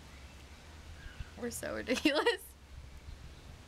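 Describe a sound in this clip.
Two young women laugh together.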